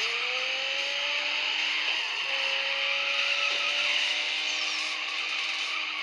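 Tyres screech while a car drifts.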